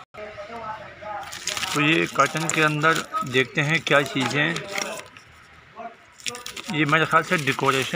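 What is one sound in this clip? Cardboard boxes scrape and shift.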